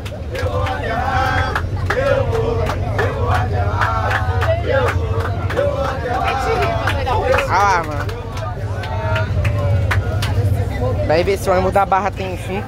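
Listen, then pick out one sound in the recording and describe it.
A crowd of young people sings and chants loudly together, close by.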